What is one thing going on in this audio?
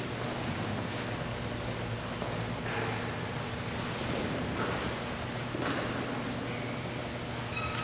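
A man speaks quietly into a microphone in a reverberant hall.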